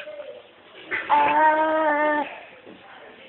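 A toddler lets out a short, loud, high-pitched cry.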